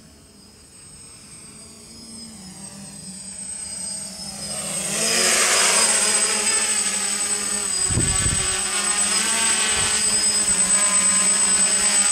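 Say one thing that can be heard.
A jet airliner approaches low overhead, its roar growing steadily louder.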